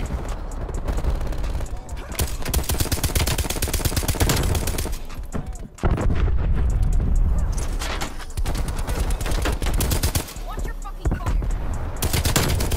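Rapid gunfire rattles in fast bursts.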